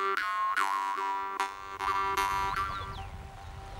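A jaw harp twangs and buzzes close by in quick rhythmic plucks.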